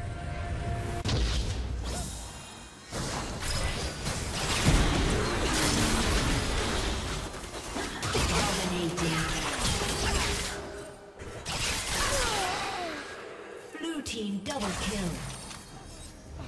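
Magic blasts and hits whoosh and crackle in a fast video game battle.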